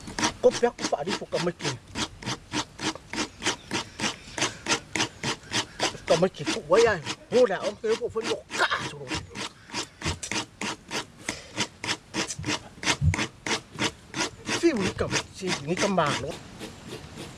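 A woman grates coconut with a quick, steady scraping rhythm.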